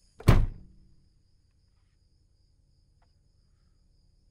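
A car engine idles with a low, quiet hum.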